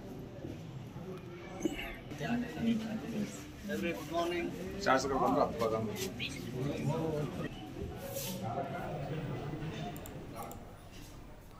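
A crowd of men and women chatter and call out together nearby.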